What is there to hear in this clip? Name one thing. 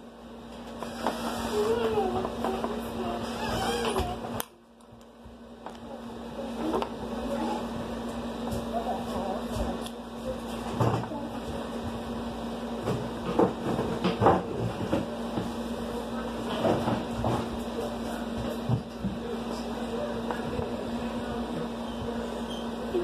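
A young woman talks calmly, close by.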